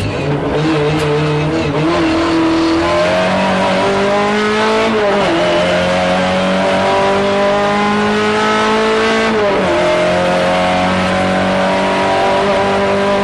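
Tyres rumble over the road.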